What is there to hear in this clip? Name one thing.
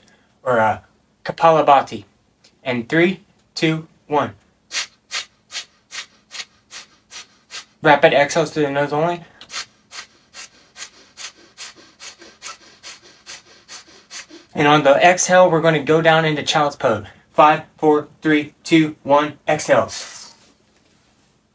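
A man speaks calmly and slowly nearby, giving guidance.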